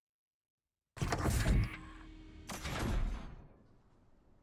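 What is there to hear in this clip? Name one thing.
A heavy metal door grinds and clanks open.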